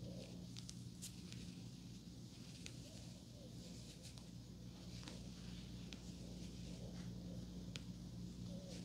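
Small hair pins click faintly.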